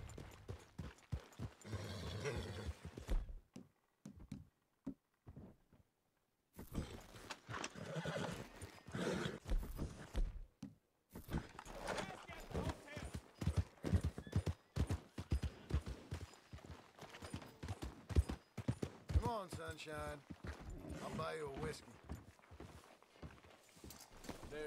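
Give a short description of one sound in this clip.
Horse hooves clop steadily on a dirt road.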